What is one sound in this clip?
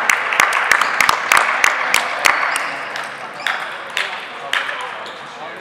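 A ping pong ball clicks quickly back and forth on paddles and a table in a large echoing hall.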